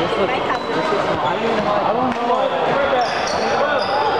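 A badminton racket smacks a shuttlecock in a large echoing hall.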